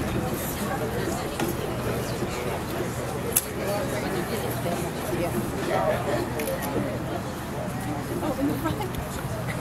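A large choir of young people sings together outdoors.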